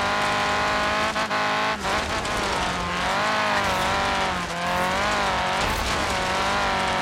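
Tyres rumble over rough dirt and grass.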